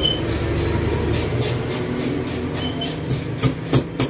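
A hand taps on a woven cane chair.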